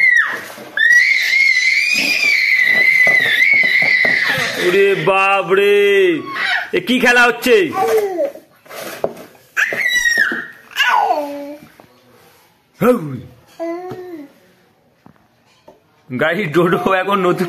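A toddler squeals and babbles close by.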